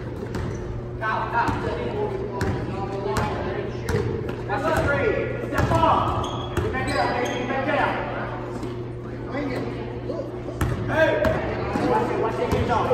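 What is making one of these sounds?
Young spectators talk and call out in the stands.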